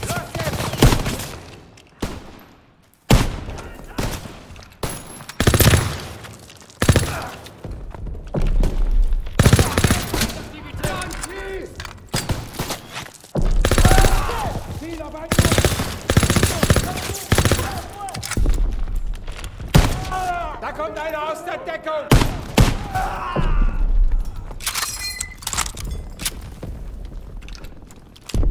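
Gunshots bang in rapid bursts, echoing off hard walls.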